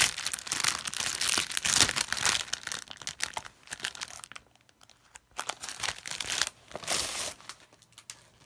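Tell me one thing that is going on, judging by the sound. A plastic wrapper crinkles and rustles as a hand handles it.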